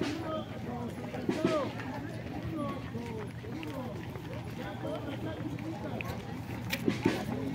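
Footsteps shuffle on a paved road.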